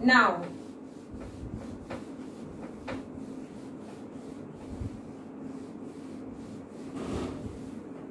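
A duster rubs across a whiteboard.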